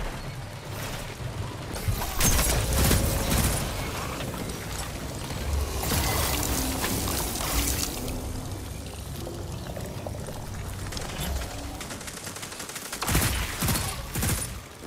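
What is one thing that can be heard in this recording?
Video game gunfire cracks out in rapid bursts.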